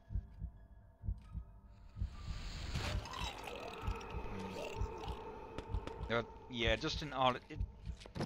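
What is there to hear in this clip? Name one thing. A creature's claws slash and strike with sharp whooshes and thuds.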